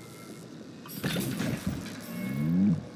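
Electricity crackles and sizzles.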